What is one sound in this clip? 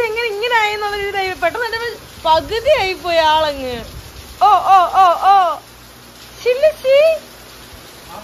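A man speaks close by in a high, playful, cooing voice.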